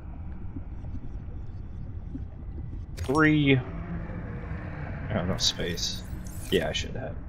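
Water rumbles and swirls deep underwater.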